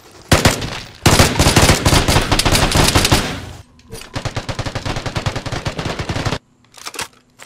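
Rapid gunfire rattles in a tight tunnel.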